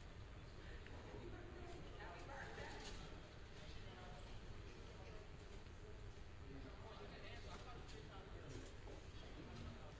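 Footsteps and sneakers squeak faintly on a wooden floor in a large echoing hall.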